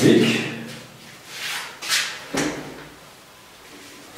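A board eraser wipes across a whiteboard.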